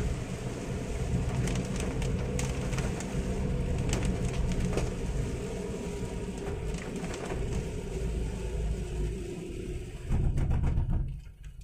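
Windscreen wipers swish back and forth across wet glass.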